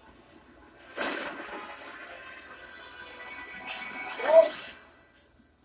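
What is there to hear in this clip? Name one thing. A loud electronic whoosh bursts from a television speaker and fades.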